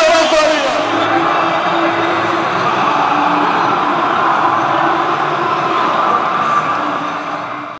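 A large crowd roars and chants in a stadium.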